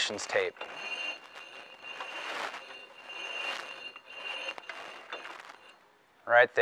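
A thin wire cable scrapes and rustles softly.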